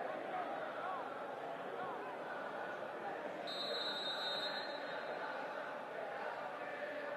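Men shout to each other across an open pitch.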